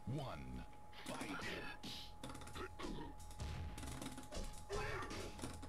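Punches and kicks land with sharp thuds in a fighting game.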